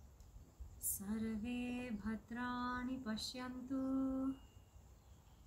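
A young man chants in a steady, sustained voice nearby.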